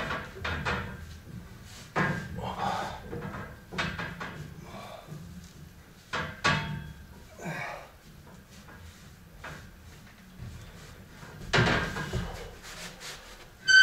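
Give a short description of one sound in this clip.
Metal weight plates clank and rattle against a bar.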